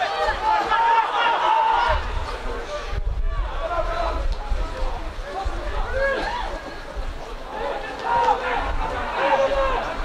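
A football is kicked on a grass pitch outdoors.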